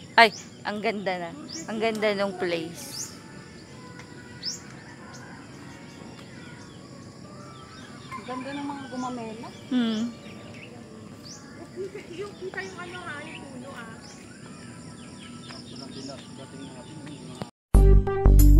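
A young woman talks calmly and cheerfully close by.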